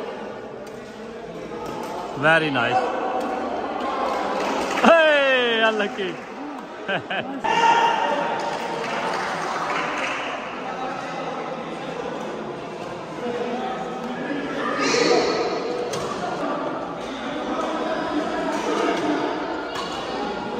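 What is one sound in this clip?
Men chatter and call out in a large echoing hall.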